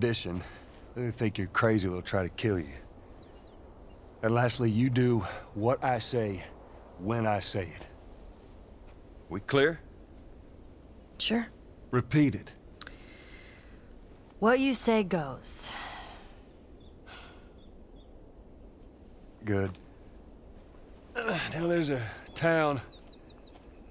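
A man speaks calmly in a low, gruff voice.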